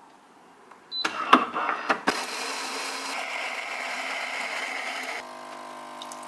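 A coffee machine grinds beans with a loud whirr.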